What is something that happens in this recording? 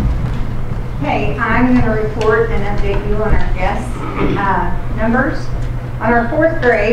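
A woman speaks into a microphone in an echoing hall.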